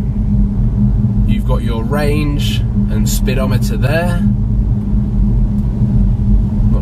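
A car hums and rumbles steadily as it drives along the road.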